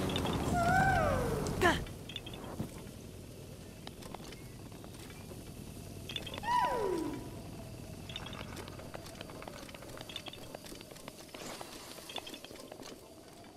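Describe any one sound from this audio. Light footsteps and scrapes tap on rock.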